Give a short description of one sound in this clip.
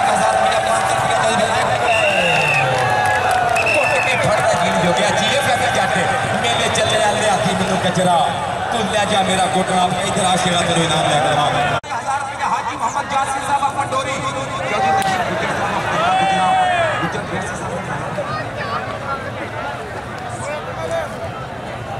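A man announces excitedly over a loudspeaker.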